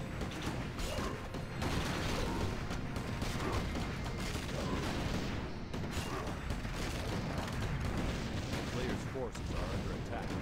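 Swords clash and spells burst in a busy game battle.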